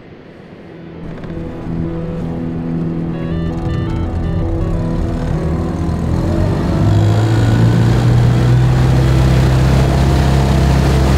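A four-stroke outboard motor runs and then speeds up.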